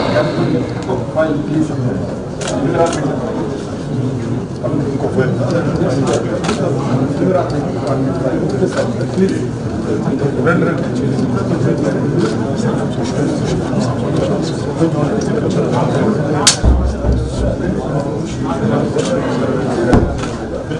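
A crowd of men chatter over one another nearby.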